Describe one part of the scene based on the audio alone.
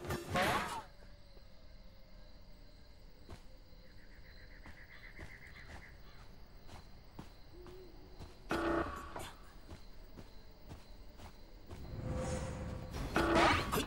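Heavy footsteps thud at a steady pace.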